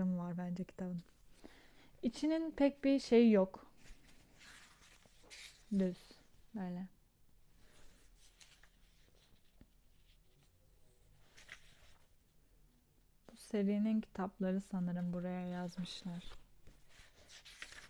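A young woman talks calmly and close to a microphone, with pauses.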